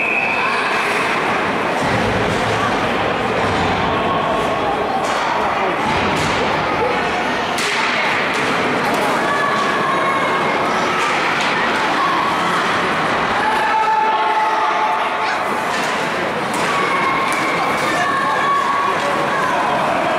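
Spectators chatter and call out in a large echoing rink.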